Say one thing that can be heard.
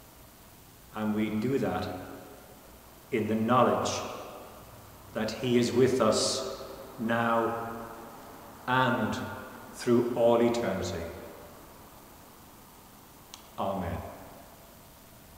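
An elderly man speaks slowly and solemnly in a large echoing hall.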